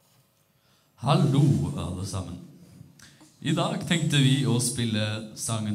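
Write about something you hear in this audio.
A young man reads out calmly through a microphone on a loudspeaker system.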